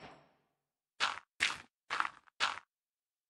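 Dirt crumbles under a digging tool.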